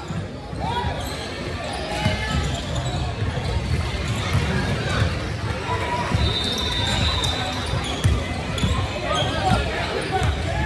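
A crowd of people talks and shouts in a large echoing gym.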